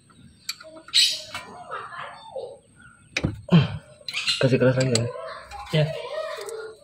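Metal parts clink and scrape as a hand tool works on them.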